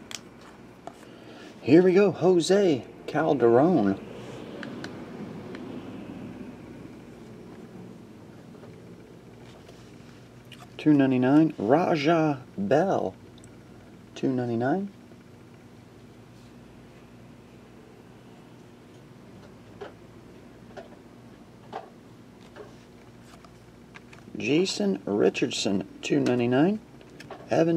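Trading cards slide and flick softly against each other in hands.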